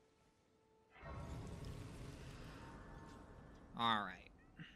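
A soft shimmering whoosh swells and fades.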